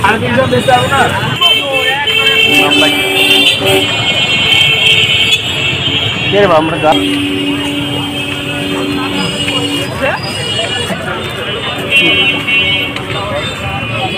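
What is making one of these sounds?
A crowd of people chatters in the open air.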